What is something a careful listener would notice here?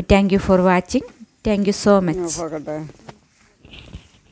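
Leafy plants rustle as they are pulled.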